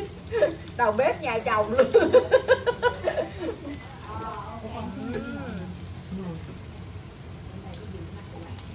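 A spatula scrapes food in a frying pan.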